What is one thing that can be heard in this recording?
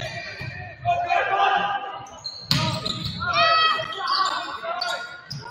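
Players shout and call out across the court.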